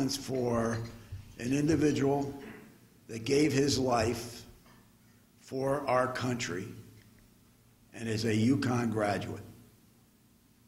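An elderly man speaks slowly and deliberately into a microphone, heard through a loudspeaker, with pauses between phrases.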